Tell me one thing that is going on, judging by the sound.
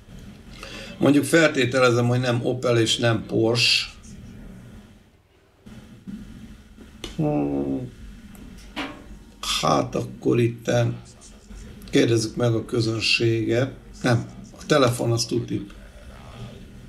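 A man talks calmly and thoughtfully into a close microphone.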